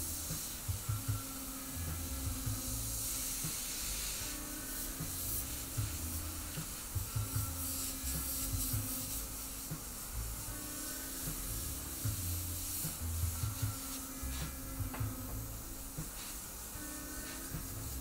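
An airbrush hisses in short bursts close by.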